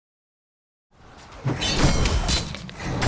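Weapons clash and spells crackle in a fight.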